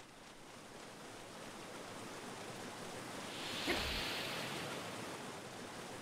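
A waterfall roars nearby, growing louder and then fading.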